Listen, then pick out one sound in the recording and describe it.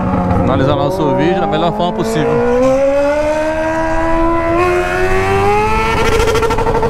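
An inline-four sport motorcycle with a straight-through exhaust accelerates through the gears, its howl rising in pitch.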